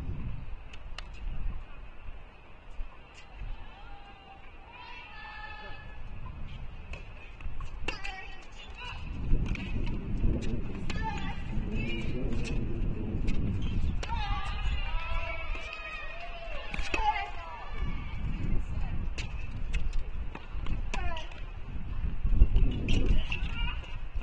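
Tennis balls are struck with rackets in a sharp, echoing rally.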